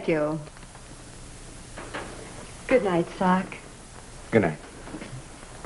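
A woman speaks brightly and cheerfully nearby.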